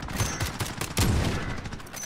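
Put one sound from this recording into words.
A sniper rifle fires with a loud, sharp boom.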